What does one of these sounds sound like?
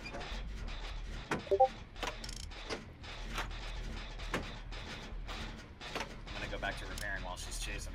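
A machine rattles and clanks as it is repaired.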